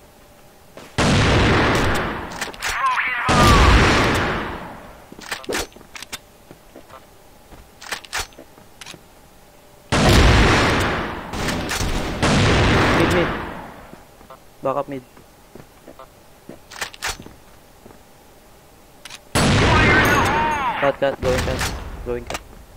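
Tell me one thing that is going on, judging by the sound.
A sniper rifle fires loud booming shots that echo away.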